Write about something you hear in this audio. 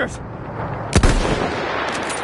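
A rifle fires a single loud, sharp shot close by.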